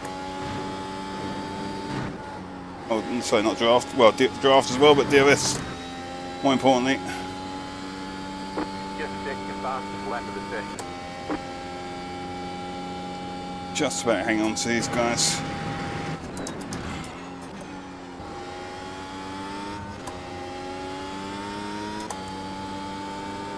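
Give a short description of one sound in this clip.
A racing car engine drones at high revs and shifts gears.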